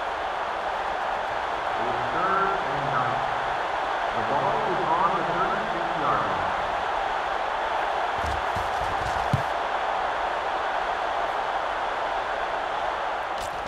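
A large crowd cheers with a steady roar.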